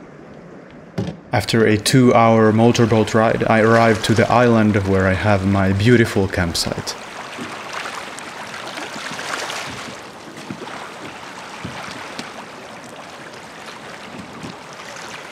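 Small waves lap gently against a rocky shore.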